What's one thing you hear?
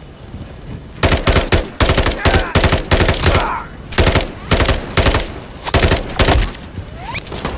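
A rifle fires rapid bursts of shots that echo in a tunnel.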